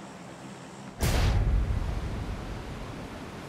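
A loud rush of wind bursts out and slowly fades.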